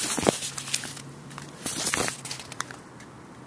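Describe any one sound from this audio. A sheet of paper rustles in a hand.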